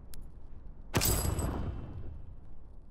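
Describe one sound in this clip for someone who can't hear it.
A game menu plays a swooshing chime as a progress bar fills.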